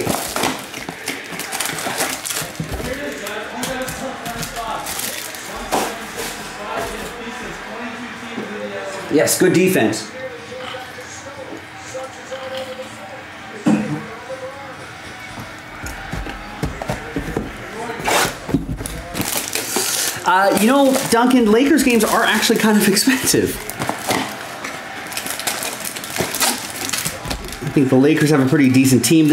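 Plastic wrapping crinkles and rustles in hands.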